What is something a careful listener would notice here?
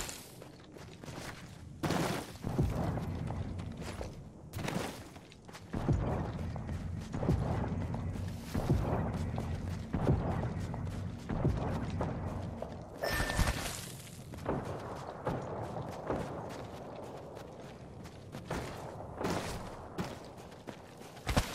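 Footsteps run over sand.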